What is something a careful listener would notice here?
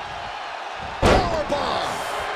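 A body slams down onto a wrestling mat with a heavy thud.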